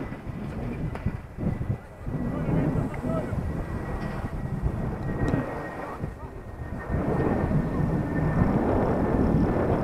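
A drone's motors whine steadily.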